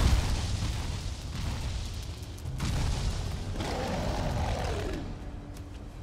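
Fiery explosions roar and crackle.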